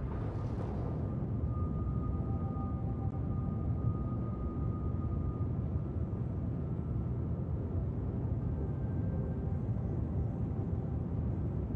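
A spacecraft engine rumbles low and steady.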